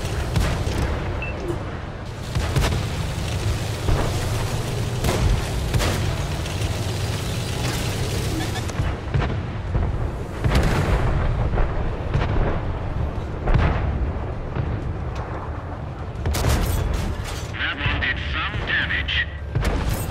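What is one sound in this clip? Gunshots boom in the distance.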